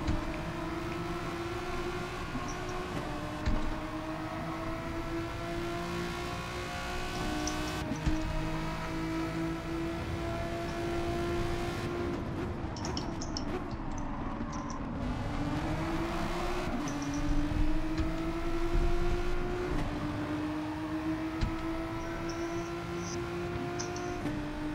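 A racing car engine whines steadily, rising in pitch and dropping with each gear change.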